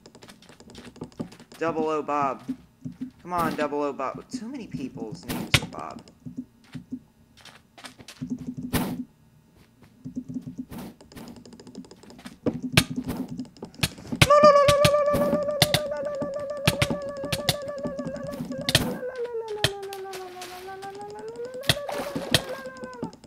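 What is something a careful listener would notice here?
Sword blows land with quick, sharp hits.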